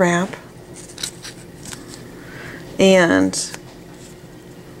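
Small scissors snip through a thin plastic sheet with soft clicks.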